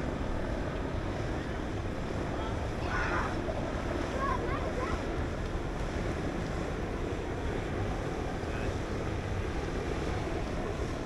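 Water laps and splashes gently.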